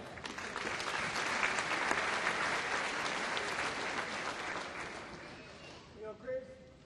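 An audience applauds in a large hall, fading away.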